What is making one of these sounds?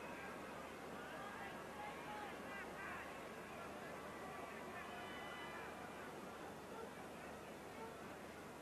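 A stadium crowd murmurs and cheers in a large open space.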